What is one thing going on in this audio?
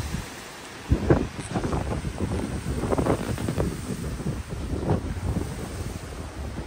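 Wind gusts through leafy trees.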